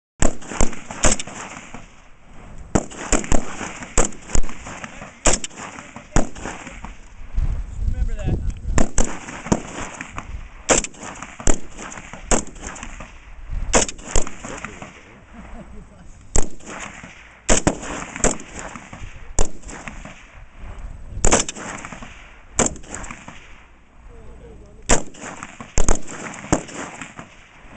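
Rifle shots crack one after another outdoors, each with a short echo.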